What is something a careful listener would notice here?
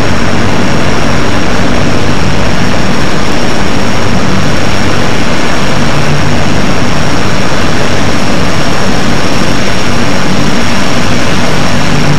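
Propeller engines roar loudly and steadily.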